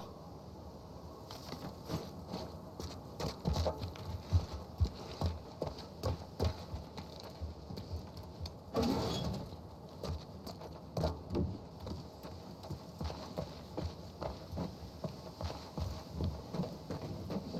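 Footsteps walk over hard ground at a steady pace.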